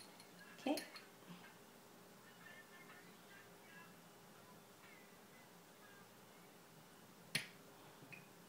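A metal spoon clinks sharply against a glass.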